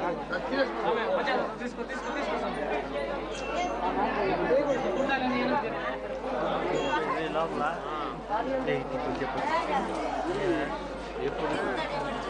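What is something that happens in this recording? A crowd of men and women talks and murmurs all around, close by.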